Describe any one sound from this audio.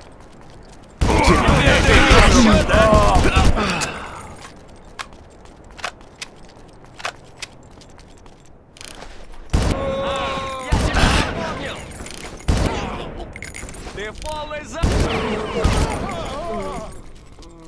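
Gunfire bursts loudly and echoes.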